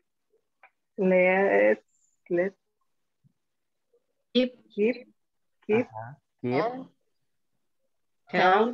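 A woman speaks in short phrases over an online call.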